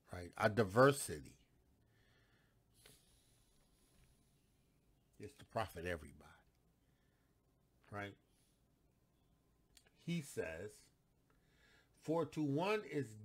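A middle-aged man speaks with animation, close to a microphone, pausing between phrases.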